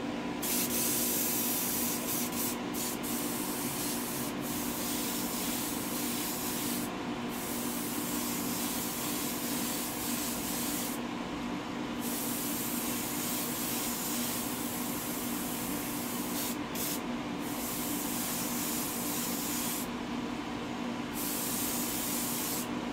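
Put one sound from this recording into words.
An extractor fan hums steadily.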